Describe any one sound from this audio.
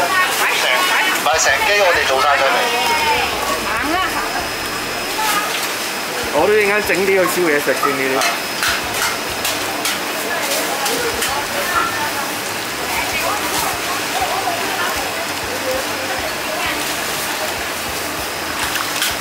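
Water splashes as large fish thrash in a tub.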